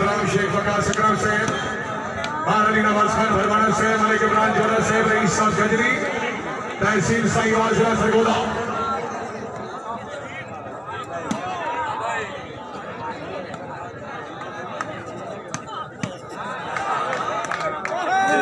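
A young man chants rapidly while running in.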